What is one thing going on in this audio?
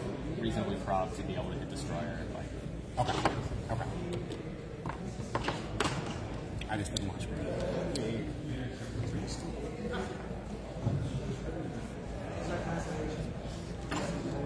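Many people chatter nearby in an echoing room.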